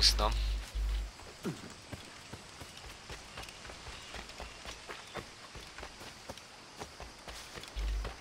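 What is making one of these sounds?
Quick footsteps run over soft ground.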